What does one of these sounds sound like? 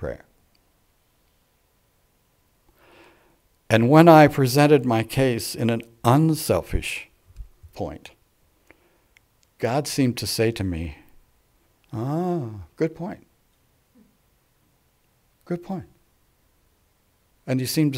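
An elderly man speaks calmly through a microphone, with pauses.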